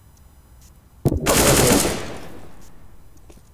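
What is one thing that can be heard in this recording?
A rifle fires a rapid burst of loud shots that ring out and fade.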